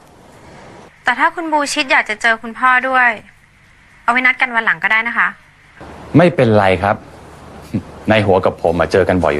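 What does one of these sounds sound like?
A man speaks calmly on a phone, close by.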